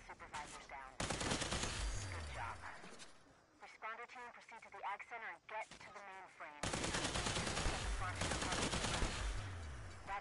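An electric weapon crackles and buzzes loudly in bursts.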